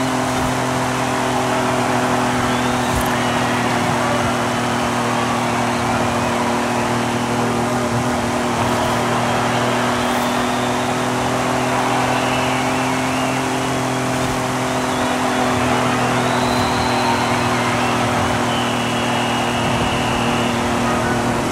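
Tyres squeal as a car slides through a bend.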